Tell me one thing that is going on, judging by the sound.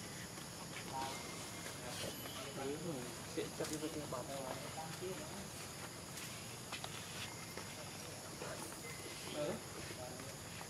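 Young monkeys squeak and chatter nearby.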